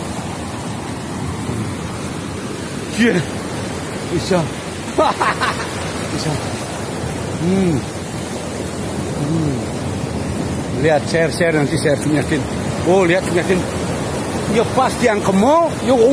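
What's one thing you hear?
Floodwater rushes and splashes steadily.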